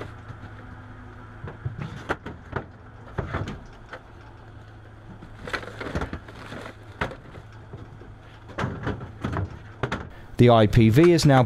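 A van engine idles steadily.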